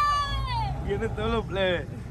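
Young boys laugh and chatter close by.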